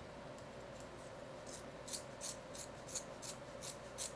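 A pencil scrapes in a small sharpener with quick, dry clicks.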